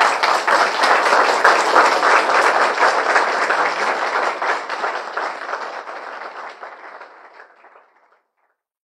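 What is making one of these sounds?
A crowd applauds loudly indoors, then the clapping fades away.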